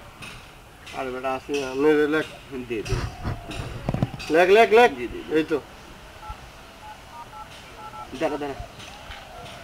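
A second young man answers with animation up close.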